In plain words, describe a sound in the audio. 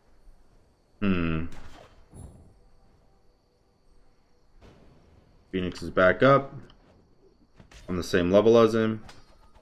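A young man talks into a close microphone with animation, in short bursts.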